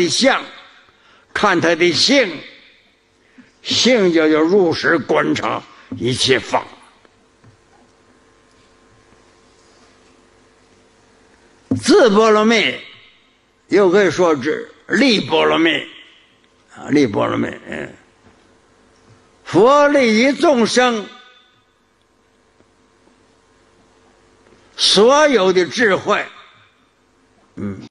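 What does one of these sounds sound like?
An elderly man speaks slowly and calmly into a microphone, in short phrases with long pauses.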